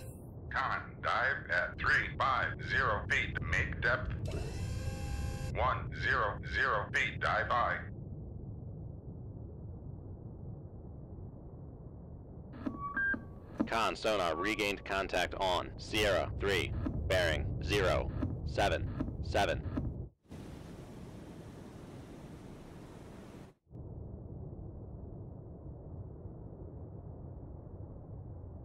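A submarine's engine rumbles low and steady underwater.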